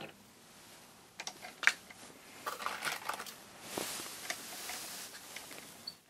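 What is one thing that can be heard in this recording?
A metal press lever clanks as a cartridge is worked in the die.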